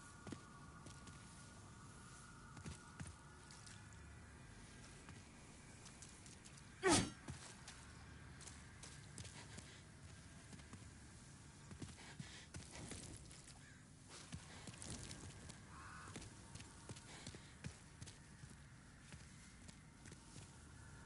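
Footsteps scrape on stone.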